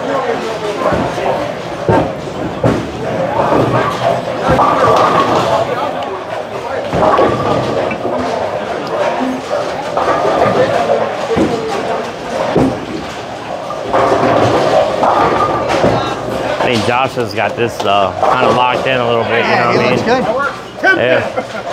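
People talk in a busy, echoing hall.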